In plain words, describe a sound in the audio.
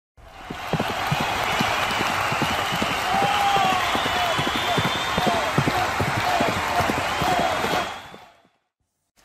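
Horses gallop past with drumming hooves.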